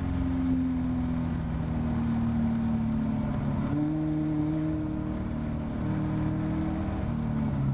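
Wind rushes past an open cockpit.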